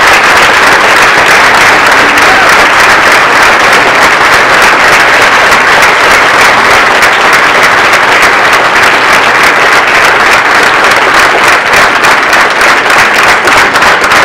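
A large crowd applauds loudly in an echoing hall.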